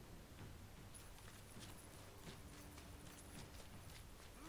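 Footsteps thud quickly on stone as a warrior runs.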